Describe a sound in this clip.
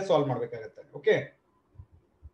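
A man speaks briefly and calmly close by.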